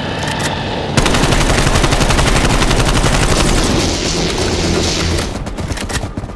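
An electric weapon crackles and buzzes loudly.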